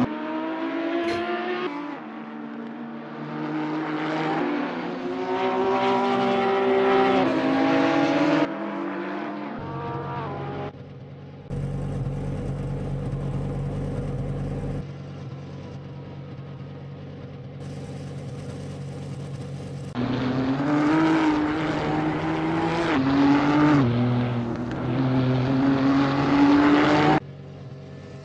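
A racing car engine roars and revs up and down as the car speeds along.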